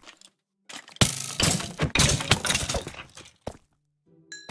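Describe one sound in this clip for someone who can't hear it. A sword swings and strikes again and again.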